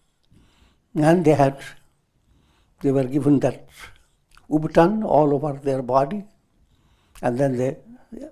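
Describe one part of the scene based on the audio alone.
An elderly man speaks calmly through a clip-on microphone, pausing between phrases.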